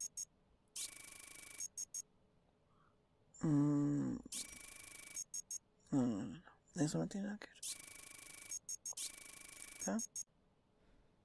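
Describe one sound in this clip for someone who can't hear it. Short electronic buzzing tones sound in a computer game, one after another.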